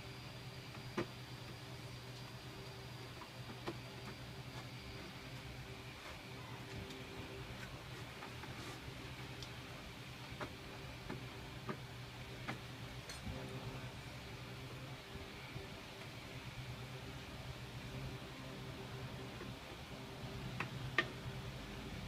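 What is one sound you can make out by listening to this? A plastic shade clicks and taps now and then as it is handled.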